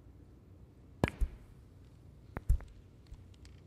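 Snooker balls click sharply against each other.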